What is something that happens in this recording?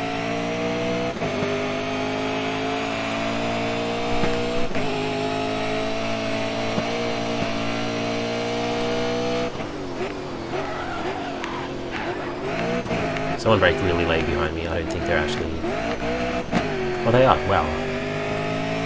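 A racing car engine roars at high revs, rising in pitch and dropping at each gear change.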